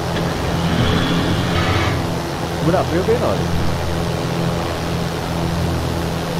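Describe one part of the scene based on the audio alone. A light aircraft's propeller engine drones steadily.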